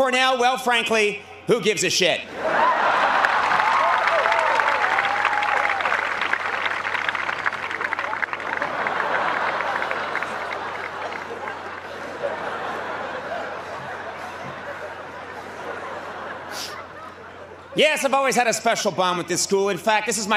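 A man speaks with animation into a microphone to an outdoor crowd.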